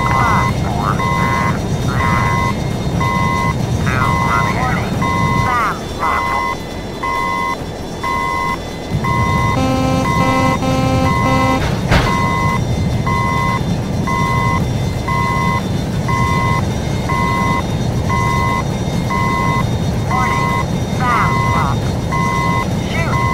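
A warning tone beeps over and over in a quick, even rhythm.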